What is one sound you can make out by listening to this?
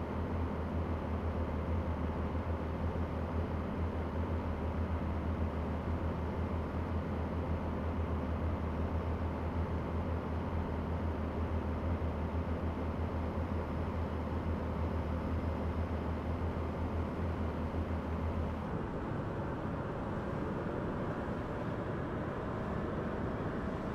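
A truck engine drones steadily while driving.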